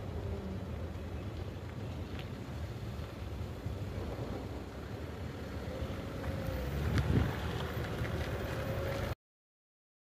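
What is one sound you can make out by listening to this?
A level crossing bell rings steadily outdoors.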